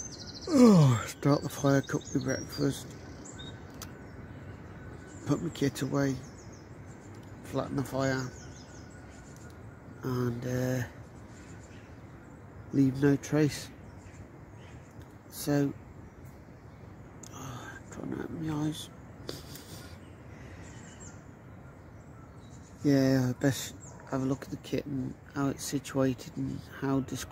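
A middle-aged man talks calmly and close to the microphone, with pauses.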